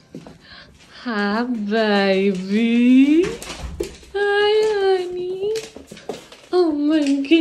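A dog whines and howls loudly in long, wavering cries.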